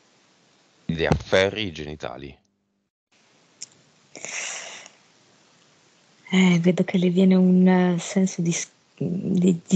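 A man speaks over an online call, with pauses.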